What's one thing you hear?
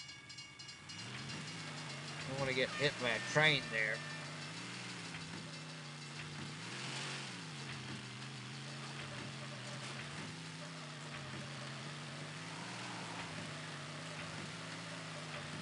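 A truck engine drones and revs.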